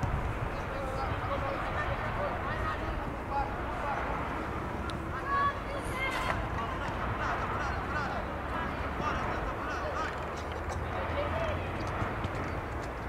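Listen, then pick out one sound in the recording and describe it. Young men shout and call to each other from across an open field.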